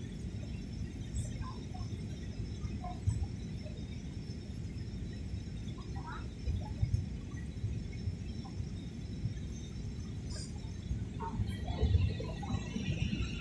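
A jet airliner's engines roar with a steady low rumble inside the cabin.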